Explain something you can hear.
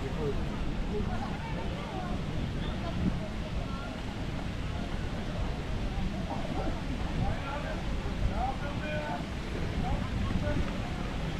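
Voices of adult men and women murmur at a distance outdoors.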